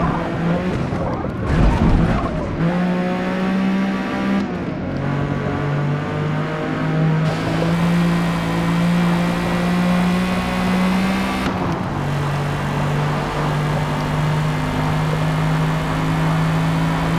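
A car engine roars loudly, revving up and shifting gears.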